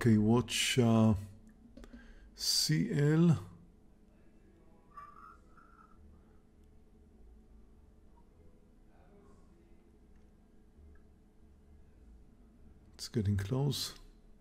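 An elderly man talks calmly and close to a microphone, with long pauses.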